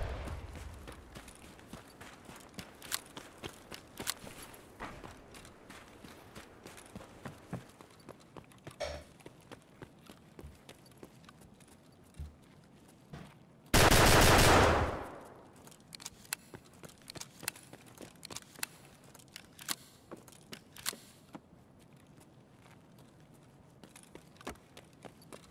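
Footsteps crunch steadily through snow.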